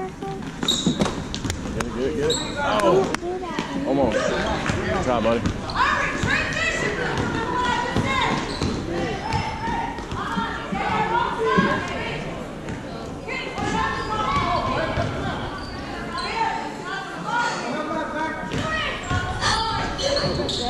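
Basketball sneakers squeak sharply on a wooden court.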